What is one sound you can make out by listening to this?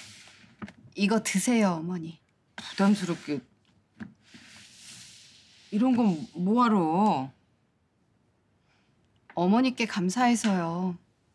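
A young woman speaks calmly and earnestly nearby.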